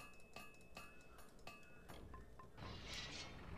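Menu clicks chime several times in quick succession.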